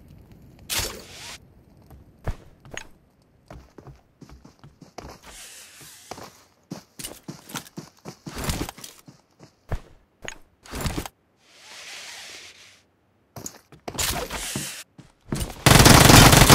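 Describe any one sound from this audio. Footsteps patter quickly over grass in a video game.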